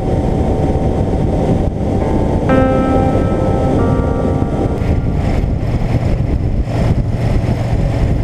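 A motorcycle engine rumbles steadily at speed.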